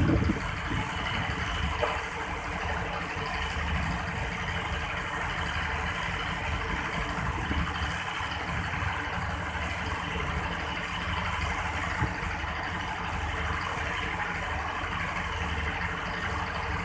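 A passenger train backs slowly along rails.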